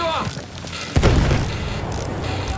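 A shell explodes nearby with a heavy boom.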